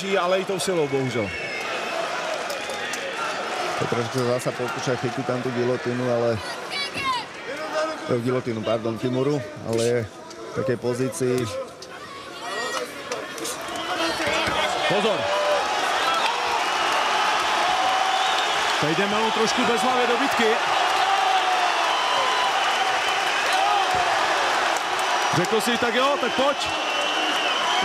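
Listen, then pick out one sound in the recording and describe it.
A large crowd cheers and roars in a big arena, growing louder.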